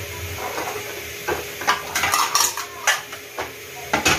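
Plates clink together.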